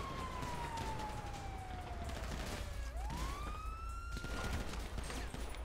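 A police siren wails nearby, rising and falling.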